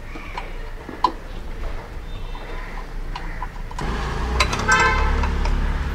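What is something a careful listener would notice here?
A metal wrench clicks and scrapes on a battery terminal.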